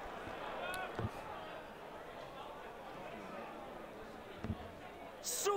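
Darts thud into a dartboard.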